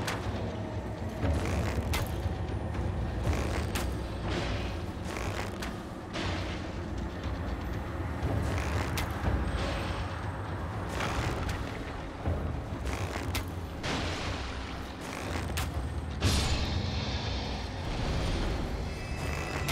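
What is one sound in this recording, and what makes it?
Hooves thud on dirt at a gallop.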